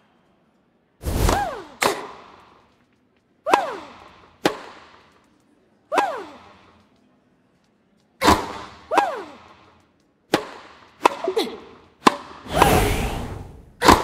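A tennis ball is struck sharply with a racket, back and forth.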